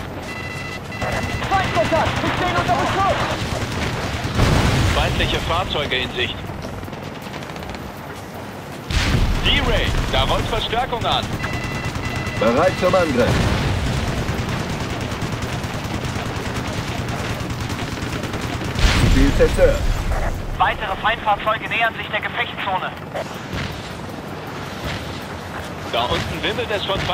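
A helicopter's rotor thumps steadily overhead.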